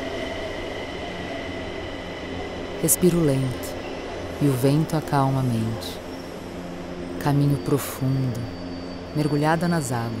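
A subway train rushes past along a platform.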